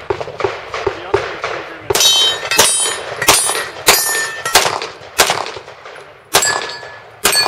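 A pistol fires rapid shots that crack and echo outdoors.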